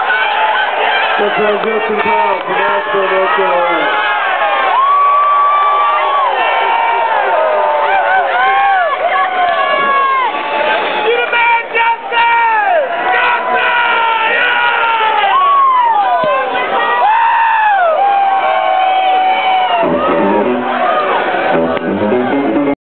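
A live band plays loud music in a large echoing hall.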